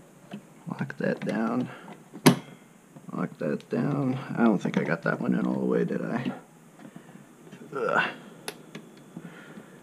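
Plastic push pins of a CPU cooler click into a motherboard.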